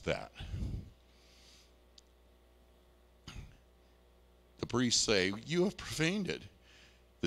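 A man speaks into a microphone in a large echoing hall, pausing between phrases.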